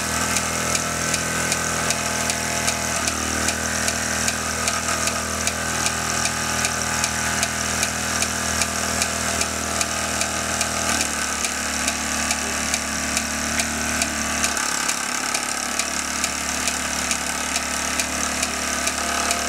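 A toy steam engine chuffs rapidly.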